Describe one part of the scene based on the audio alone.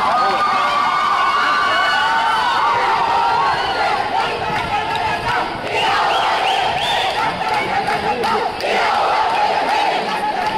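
A large crowd of young women and men cheers and shouts with excitement outdoors.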